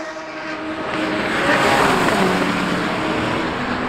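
Tyres hiss on the track as a car passes close by.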